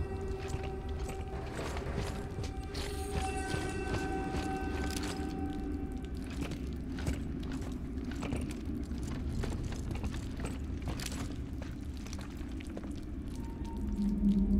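Footsteps splash and scrape on a wet floor.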